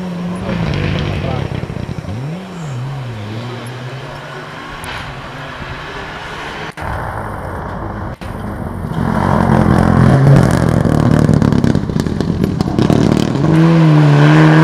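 A rally car engine roars and revs hard, its pitch rising and falling between gear changes.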